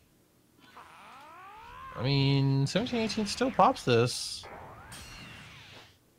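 Energy blasts whoosh and boom in a video game.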